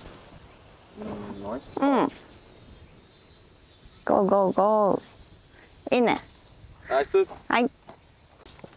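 A young woman calls out excitedly nearby.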